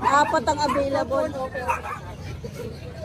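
Puppies whine and whimper close by.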